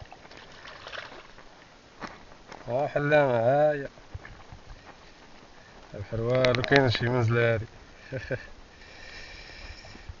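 A wet fishing net rustles and drips as hands haul it in.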